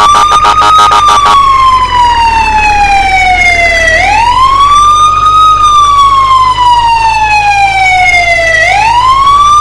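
An ambulance siren wails, rising and falling slowly.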